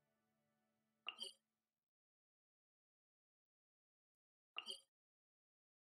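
Soft menu clicks chime.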